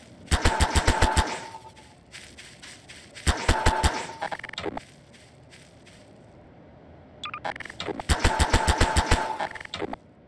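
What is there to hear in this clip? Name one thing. A game's tool gun fires with a rapid buzzing zap.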